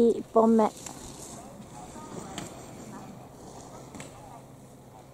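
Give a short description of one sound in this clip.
Skis scrape faintly over snow in the distance.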